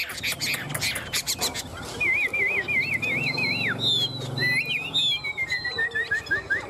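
Small caged birds sing loud, warbling whistles close by.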